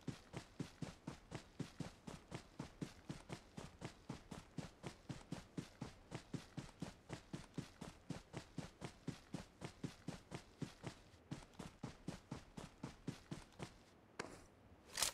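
Quick footsteps run over ground at a steady pace.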